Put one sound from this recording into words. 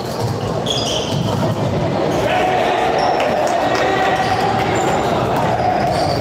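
Sports shoes squeak sharply on a hard floor in a large echoing hall.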